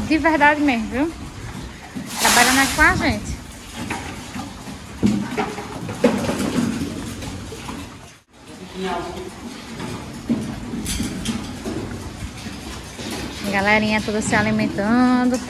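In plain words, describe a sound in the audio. A sow grunts.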